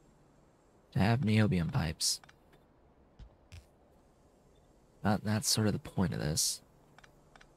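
A man speaks briefly into a close microphone, in short bursts.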